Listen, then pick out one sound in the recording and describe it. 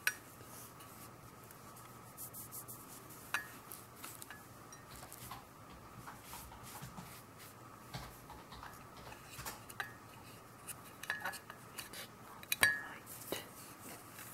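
A powder puff pats and rubs softly.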